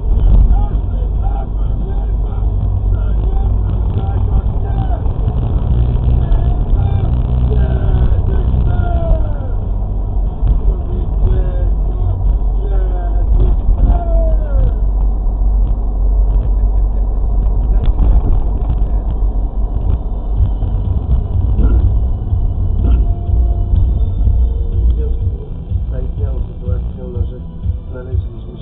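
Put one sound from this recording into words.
A car engine rumbles low and steady while driving, then quietens as the car slows.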